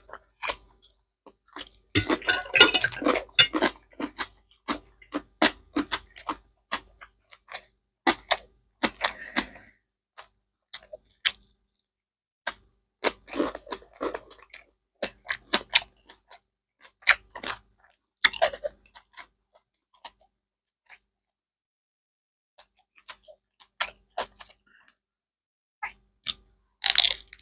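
A man chews food noisily close to a microphone.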